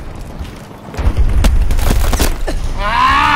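A rifle fires rapid shots.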